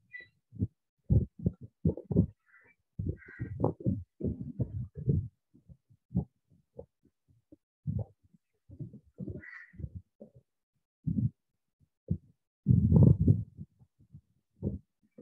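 Fabric rubs and thumps right up close in uneven bursts.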